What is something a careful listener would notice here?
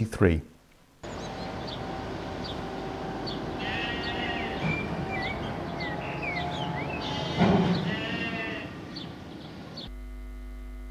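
Birds chirp outdoors.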